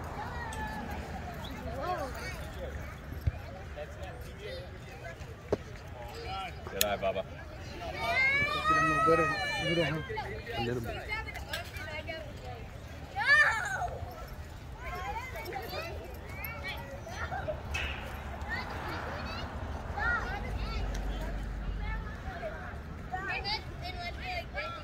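Children and adults shout and cheer outdoors.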